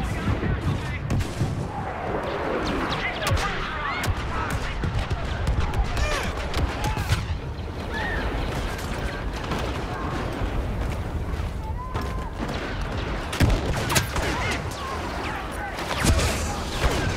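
Laser blasters fire in sharp, zapping bursts.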